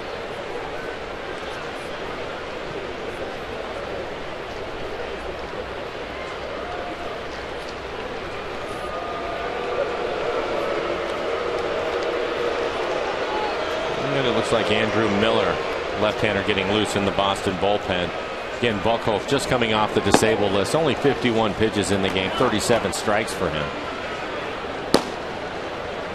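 A large crowd murmurs steadily outdoors.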